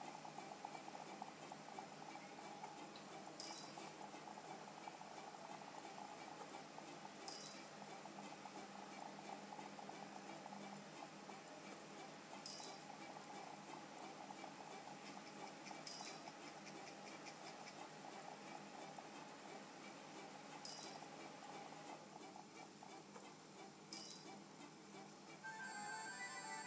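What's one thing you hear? A handheld game console plays quiet game music through its small speakers.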